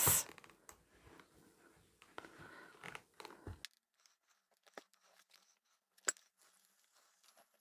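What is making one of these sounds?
An iron glides over fabric with a soft rub.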